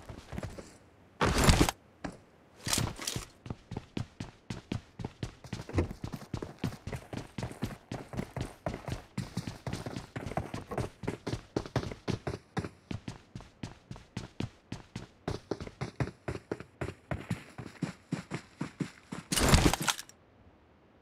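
Footsteps thud quickly across floors and up wooden stairs.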